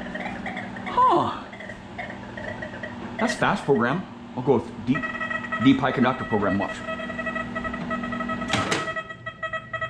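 A metal detector sounds warbling tones that rise and fall.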